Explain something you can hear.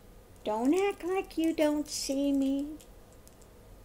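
An older woman speaks with animation, close to a microphone.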